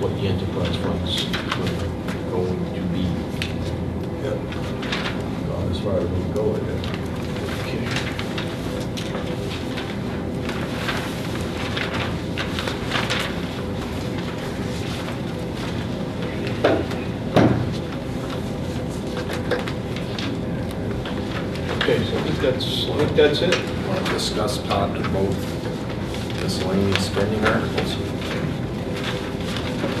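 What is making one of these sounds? A man speaks calmly at a distance in a room with some echo.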